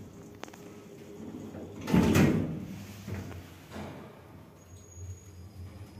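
A lift car hums and jolts as it moves.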